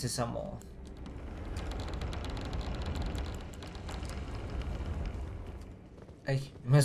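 Heavy wooden doors creak slowly open.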